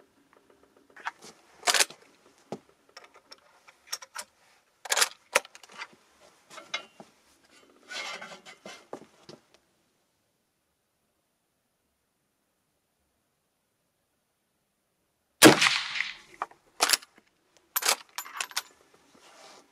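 A gun's action clicks and clacks as it is handled.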